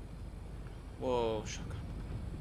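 A man speaks briefly into a nearby microphone.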